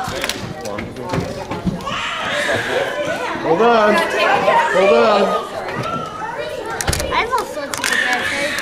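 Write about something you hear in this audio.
Several adults and young children chatter and call out nearby.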